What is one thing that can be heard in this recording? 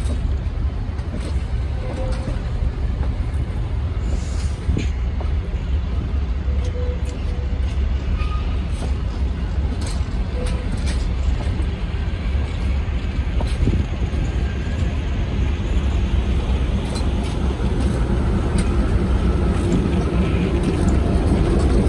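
A passenger train rumbles slowly past, close by.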